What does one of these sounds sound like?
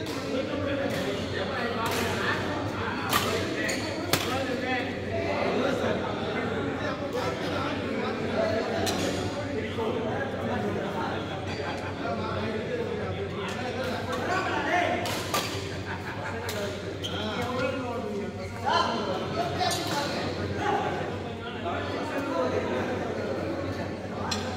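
Badminton rackets smack shuttlecocks with sharp pops in a large echoing hall.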